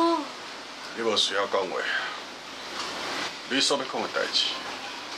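A middle-aged man speaks slowly and calmly nearby.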